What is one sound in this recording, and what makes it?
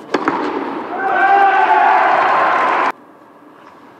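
Spectators cheer and applaud in a large echoing hall.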